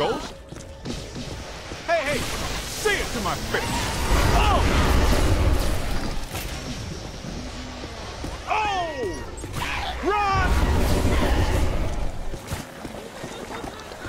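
Proton beams crackle and hum as they fire.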